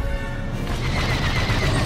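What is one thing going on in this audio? Laser cannons fire in quick bursts.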